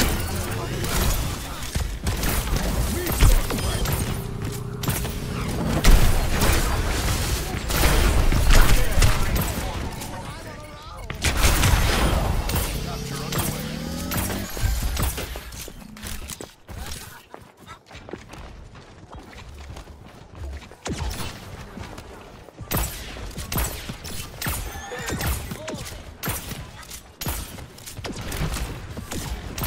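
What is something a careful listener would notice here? A video game rifle fires in rapid bursts.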